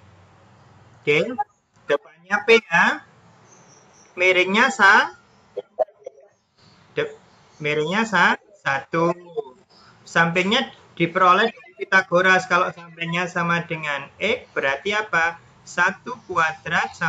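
A young woman explains calmly over an online call.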